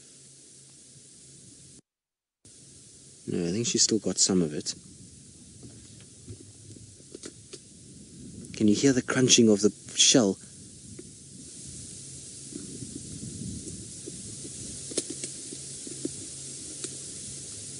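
Grass rustles as lions move through it.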